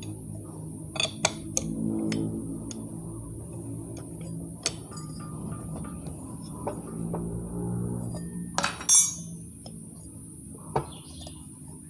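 Metal tools clink and knock against an engine.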